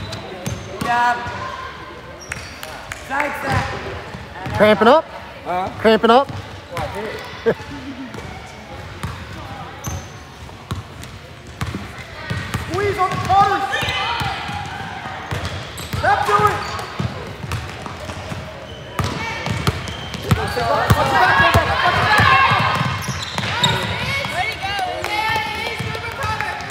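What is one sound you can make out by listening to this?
Young women shout and call out to each other across an echoing gym.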